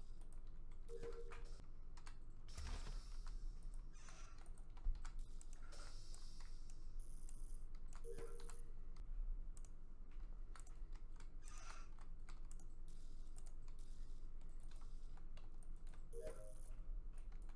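A short electronic chime sounds each time a wire snaps into place.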